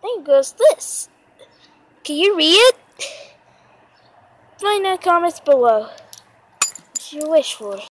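Metal tags on a dog collar jingle and clink.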